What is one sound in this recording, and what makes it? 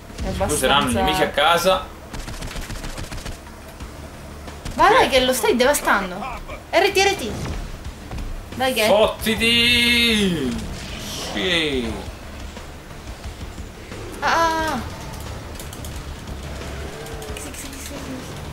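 A young woman talks and laughs with animation close to a microphone.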